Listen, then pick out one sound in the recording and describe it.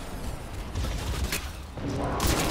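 A rifle fires a sharp shot.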